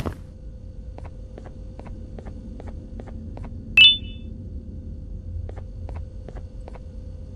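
Hands grip and pull on a rope in soft, regular taps while climbing.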